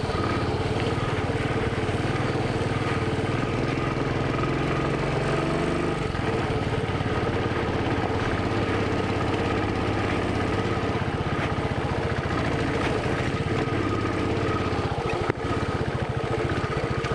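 Tyres crunch over a loose gravel road.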